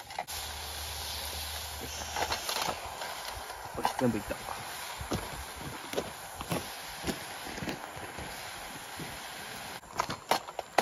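Food sizzles over a fire.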